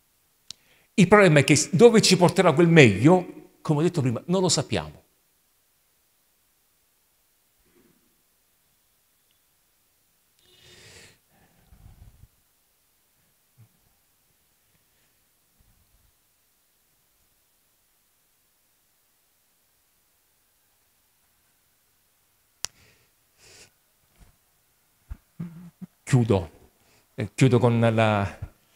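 A man speaks with animation into a microphone, heard through a loudspeaker in an echoing room, pausing for long stretches.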